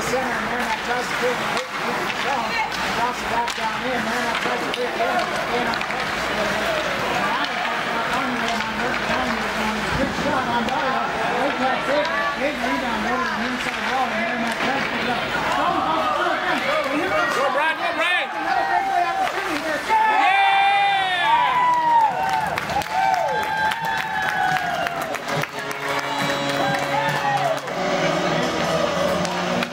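A crowd chatters and calls out in a large echoing rink.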